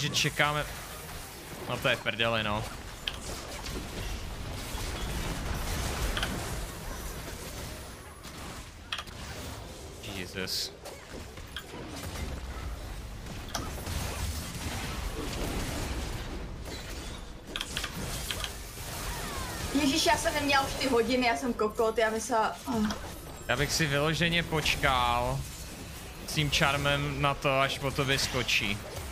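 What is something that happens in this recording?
Game spells and hits crackle and whoosh.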